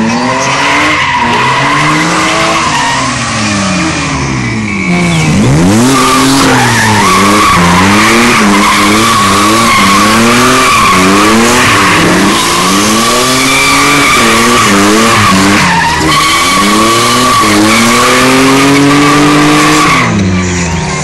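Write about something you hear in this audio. Tyres squeal on tarmac as a car spins.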